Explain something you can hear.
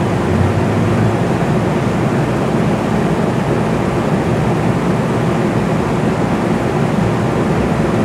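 A vehicle pulls away and starts to move.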